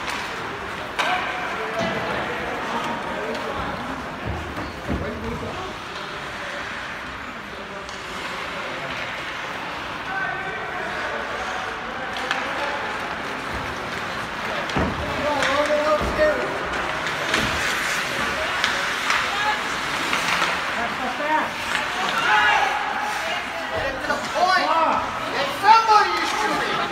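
Hockey sticks and pucks clack against the ice and boards.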